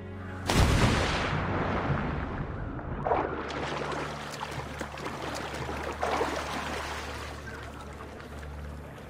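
Water sloshes as someone swims.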